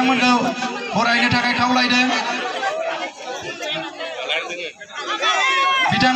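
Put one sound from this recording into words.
Amplified music plays loudly through loudspeakers outdoors.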